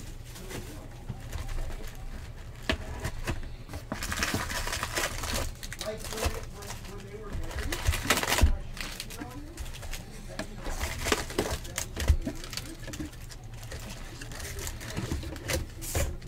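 Foil card packs crinkle and rustle as hands handle them.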